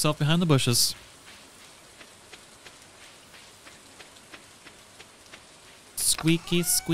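Footsteps patter softly and quickly on a path.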